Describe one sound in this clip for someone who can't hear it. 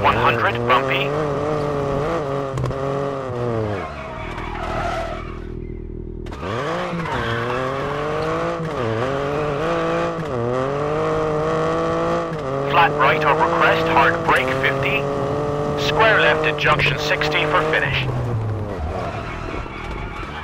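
A rally car engine revs high and shifts gears.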